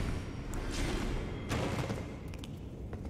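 Footsteps scrape on a stone floor.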